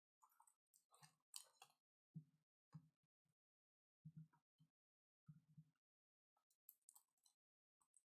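A foil card wrapper crinkles softly in hands.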